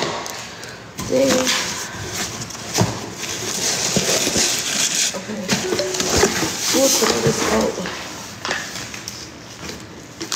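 Fabric rustles close to the microphone.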